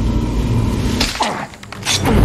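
A young woman gasps in surprise close by.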